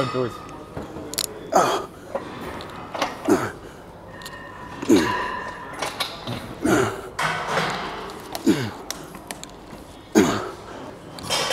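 A man grunts and groans loudly with strain.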